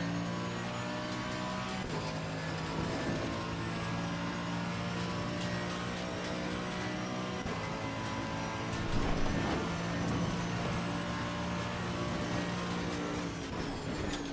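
A racing car engine roars steadily, shifting up through the gears.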